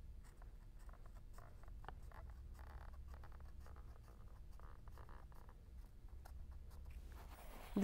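A marker squeaks as it draws lines on paper.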